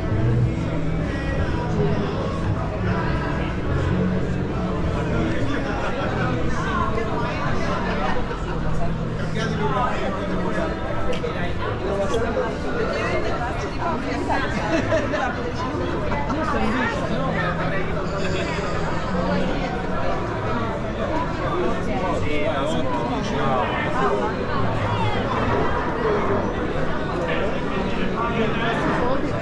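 A crowd of people chatters in a narrow street.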